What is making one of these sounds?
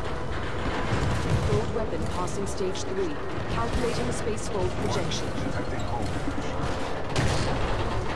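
Heavy metal machinery clanks and grinds.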